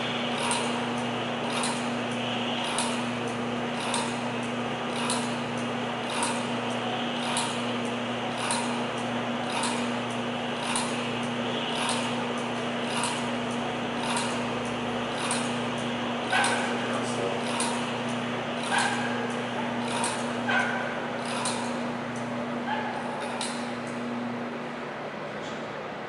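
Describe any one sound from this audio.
A machine hums steadily, then stops.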